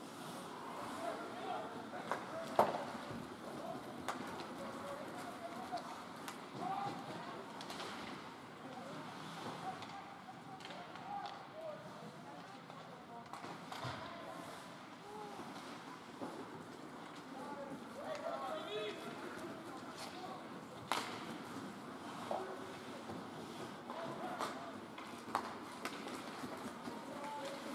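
Adult spectators chatter in a large echoing hall.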